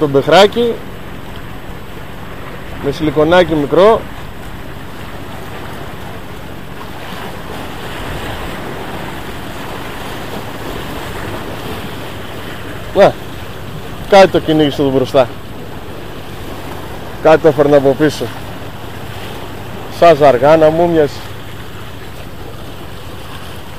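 Water laps against rocks close by.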